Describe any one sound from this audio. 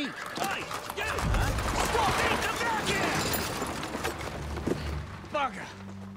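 A carriage rattles away over the ground.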